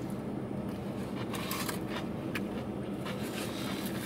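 Paper wrapping crinkles.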